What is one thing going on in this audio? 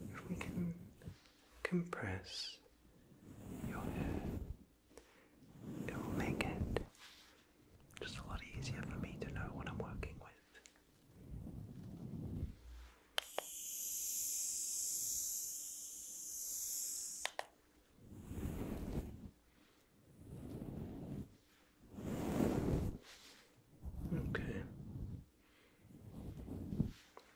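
A brush sweeps against a fuzzy microphone cover in soft rustling strokes.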